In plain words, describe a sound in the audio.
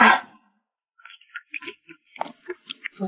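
A young woman gulps a drink.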